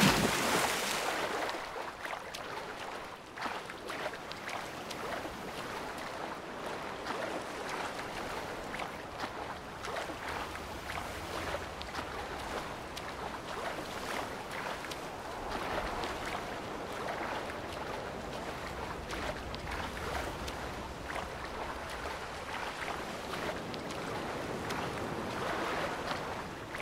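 Water splashes steadily as a swimmer strokes through it.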